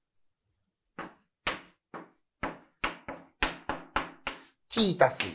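Chalk taps and scrapes on a blackboard in quick strokes.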